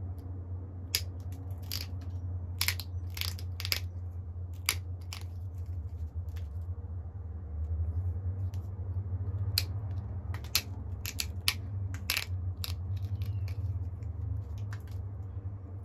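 Stone flakes snap off with sharp little clicks under steady pressure.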